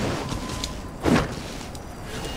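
A sword swings with a sharp whoosh and strikes.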